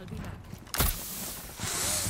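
A grenade launcher fires with a loud thud.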